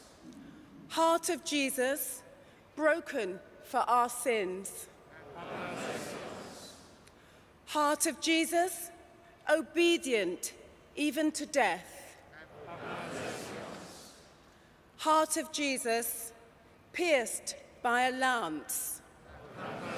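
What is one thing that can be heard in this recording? A woman sings a chant through a microphone in a large space with echo.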